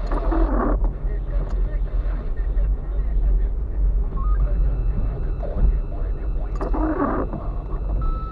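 A windscreen wiper swishes across the glass.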